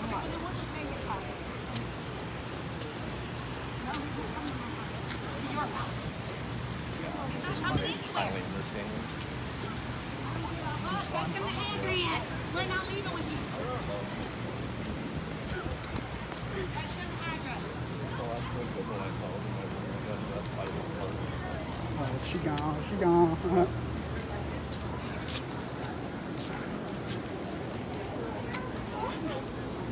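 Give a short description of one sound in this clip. Voices of people chatter outdoors at a distance.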